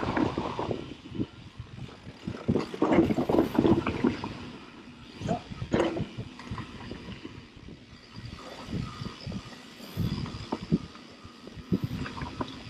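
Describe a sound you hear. Bike tyres roll and crunch over dry leaves and dirt.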